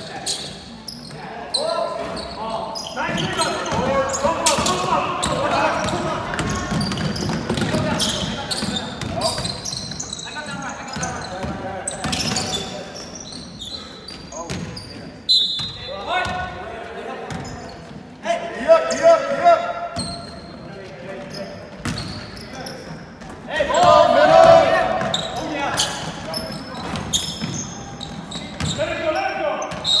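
Young men shout and call out, echoing in a large hall.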